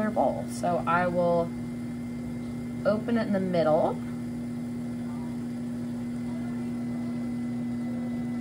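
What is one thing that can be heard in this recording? A pottery wheel motor hums steadily.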